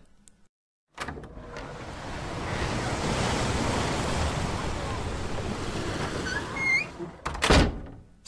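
Waves wash against rocks outdoors.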